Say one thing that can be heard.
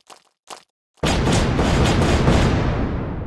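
An explosion bursts with a loud crackling roar.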